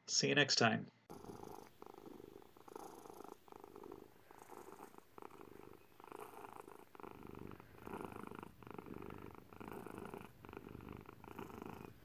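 A cat purrs softly.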